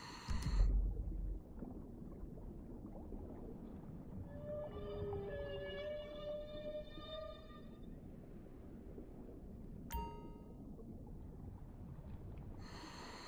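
Water churns and rumbles in a low, muffled wash underwater.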